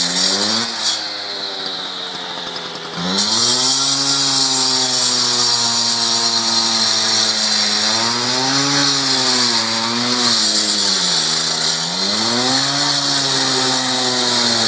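A two-stroke cut-off saw revs and bogs down as it cuts through asphalt.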